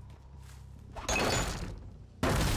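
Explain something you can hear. Electricity crackles and bursts loudly.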